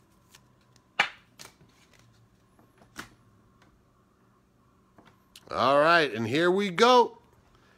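Trading cards tap and rustle as they are picked up and flipped through by hand.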